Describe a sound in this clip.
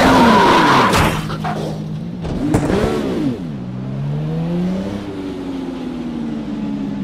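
A racing car engine revs up and down while recovering.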